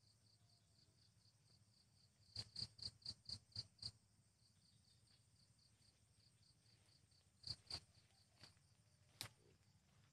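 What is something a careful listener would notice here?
Tall grass rustles as a man pushes through it on foot.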